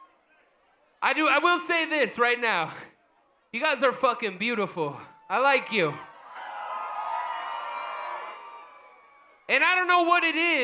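A man shouts into a microphone through loudspeakers.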